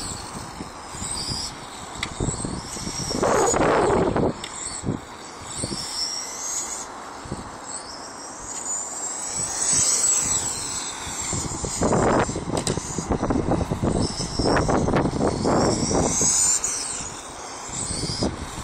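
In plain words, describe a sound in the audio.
A small electric model car whines as it speeds around, its pitch rising and falling.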